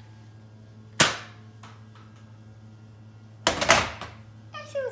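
A toy blaster fires foam darts with sharp snaps.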